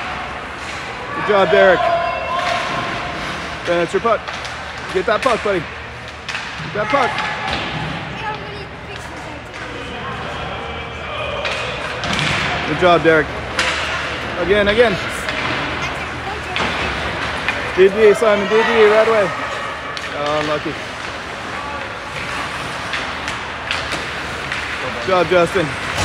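Hockey sticks clack against a puck on the ice.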